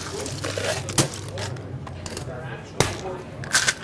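A metal shaker clinks as it is closed.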